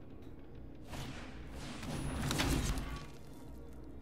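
A magical spell effect whooshes and swells loudly.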